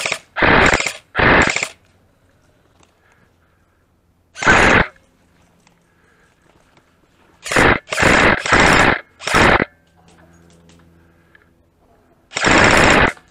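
A paintball marker fires close by in short, sharp bursts of shots.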